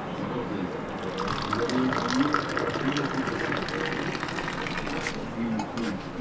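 Tea pours from a teapot into a glass.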